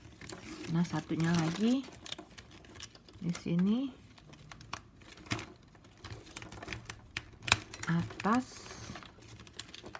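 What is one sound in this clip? Plastic strapping band rustles and clicks as it is woven by hand.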